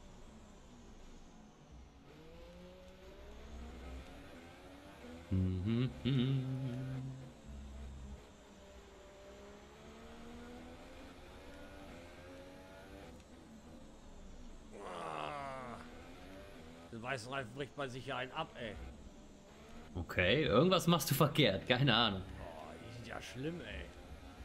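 A racing car engine revs high and whines, rising and falling in pitch as it shifts gears.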